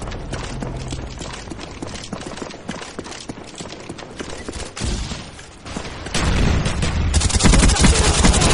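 Rapid gunfire crackles from a video game.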